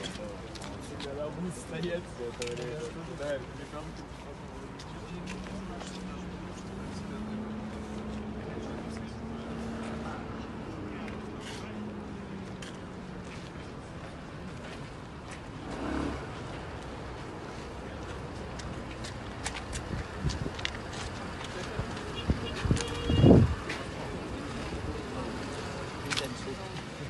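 A crowd of men and women murmur and talk nearby outdoors.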